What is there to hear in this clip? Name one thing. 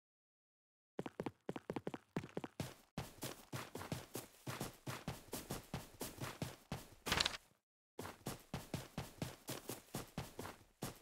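Quick footsteps run over dirt.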